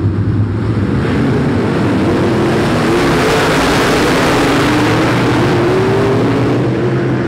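Tyres spray dirt as cars slide through a turn.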